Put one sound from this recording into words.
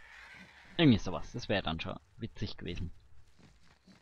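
A magic spell whooshes and shimmers.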